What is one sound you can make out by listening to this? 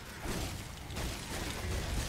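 A bright beam fires with a crackling blast.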